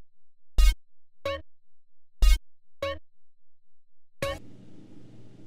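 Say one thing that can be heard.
Short electronic menu tones beep several times.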